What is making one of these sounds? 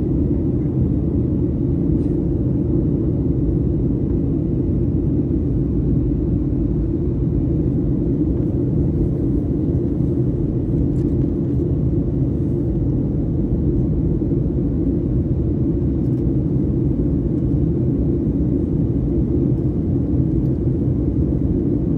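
A jet airliner's engines roar in a steady, deep drone inside the cabin.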